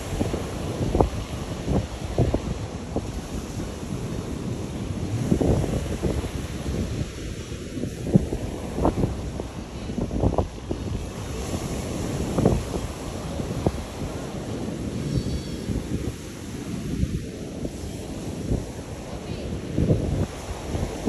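Wind gusts buffet outdoors.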